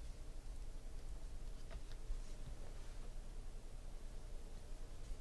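Trading cards rustle and slide softly as a hand flips through a stack.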